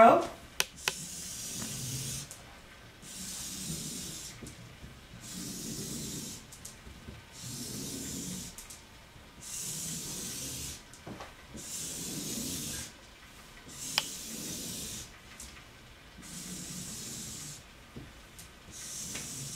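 A marker squeaks and scratches across a board in short strokes.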